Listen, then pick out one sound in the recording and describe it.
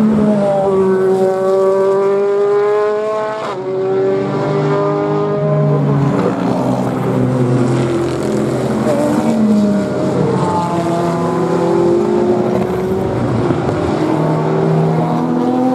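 Several GT racing cars accelerate past, engines roaring and shifting up through the gears.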